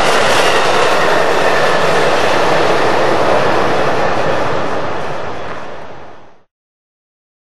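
A passenger train car rolls past on the rails and fades away.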